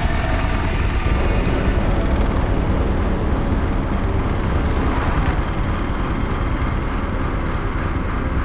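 A helicopter's rotor thumps loudly nearby.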